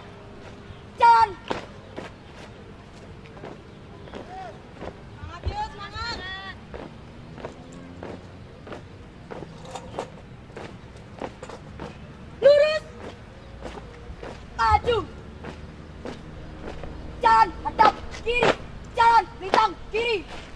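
Young people shout loudly in unison outdoors.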